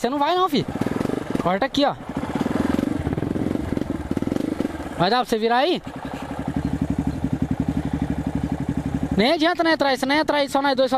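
A single-cylinder four-stroke trail bike engine revs up in short bursts.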